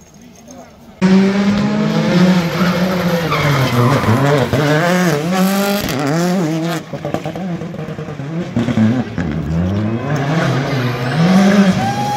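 A rally car engine revs loudly as the car races past.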